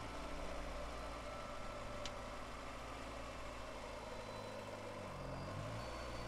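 Rain patters softly on a car's windows.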